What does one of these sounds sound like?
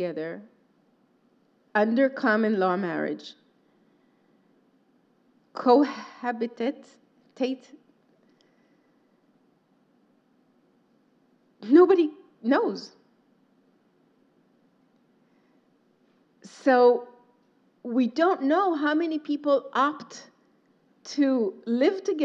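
A woman speaks calmly into a microphone, with pauses between phrases.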